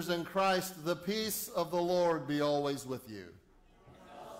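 An elderly man chants loudly through a microphone.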